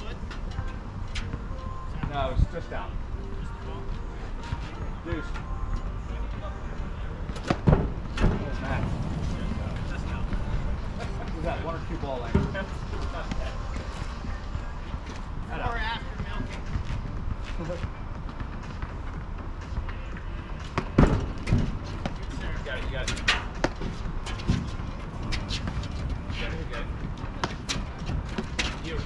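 Sneakers scuff and squeak on a hard court.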